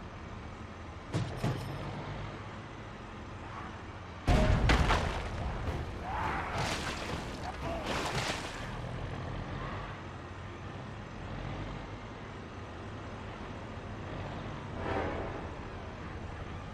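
A glowing energy sword hums and whooshes as it swings through the air.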